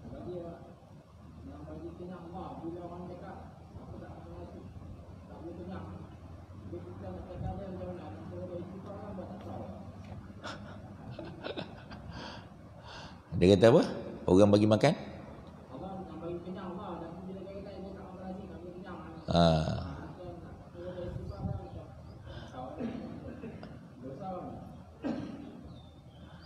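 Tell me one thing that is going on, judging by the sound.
A middle-aged man speaks into a microphone with animation, sometimes raising his voice loudly.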